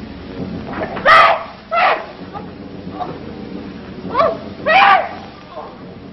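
A young woman cries out in distress.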